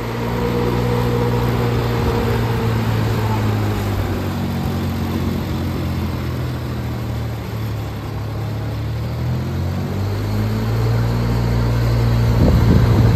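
An engine drones steadily as a sprayer vehicle drives slowly by.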